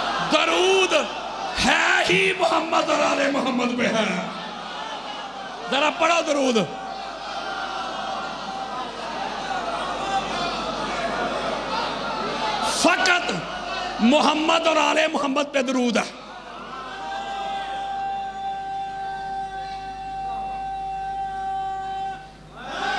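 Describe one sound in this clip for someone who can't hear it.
A man speaks with passion through a loudspeaker.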